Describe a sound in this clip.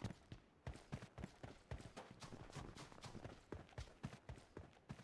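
Footsteps crunch steadily on rough ground.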